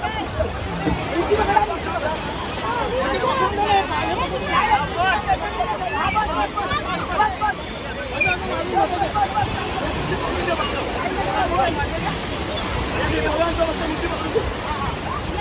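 Waves break and wash on a shore nearby.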